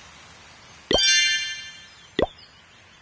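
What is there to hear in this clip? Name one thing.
A bright chime rings out as a reward is collected.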